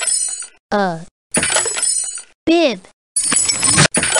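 A wooden crate bursts open with a crack.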